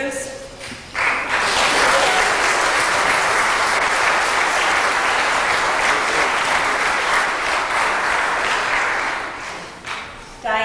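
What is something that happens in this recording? A crowd applauds steadily.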